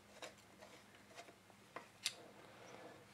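A metal rod clicks and taps against a metal part.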